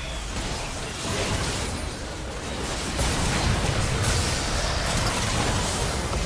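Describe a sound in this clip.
Magic blasts and crackling spell effects burst in a busy video game battle.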